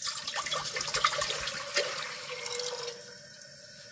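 Water pours from a plastic jug into a metal pot.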